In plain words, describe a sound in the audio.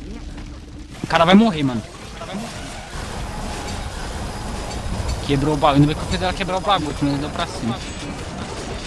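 A huge beast roars loudly.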